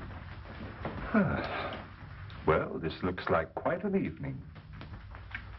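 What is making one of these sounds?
A middle-aged man speaks with amusement.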